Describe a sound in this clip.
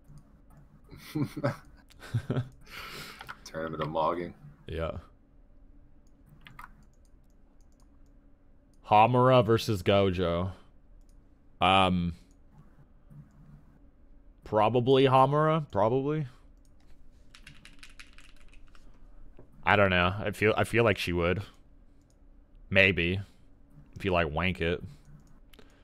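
A man talks with animation into a microphone, close by.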